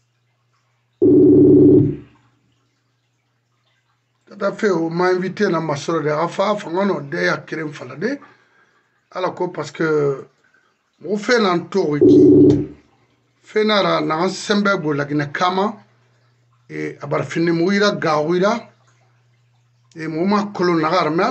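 A middle-aged man speaks close to a microphone, with animation.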